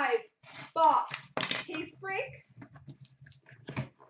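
Cardboard flaps rip as a box is torn open.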